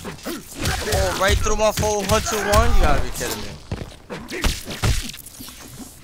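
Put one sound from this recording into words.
Game fighters grunt and strike each other with heavy thuds.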